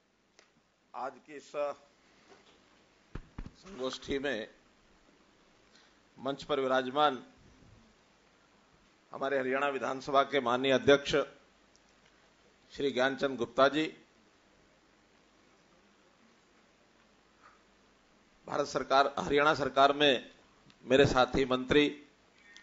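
An elderly man speaks slowly and deliberately into a microphone, in short phrases with pauses.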